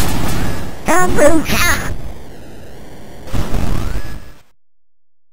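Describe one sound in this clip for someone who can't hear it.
A game explosion bursts with a crackling blast.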